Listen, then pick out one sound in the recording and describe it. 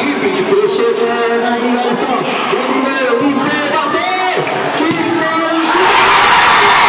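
A large crowd chatters and shouts in an echoing covered court.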